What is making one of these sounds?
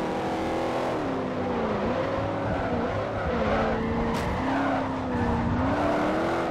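A race car engine's pitch dips and climbs again through bends.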